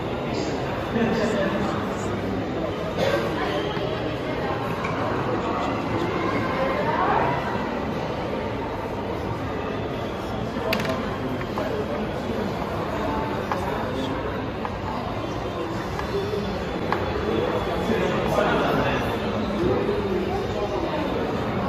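Chess pieces knock onto a wooden board.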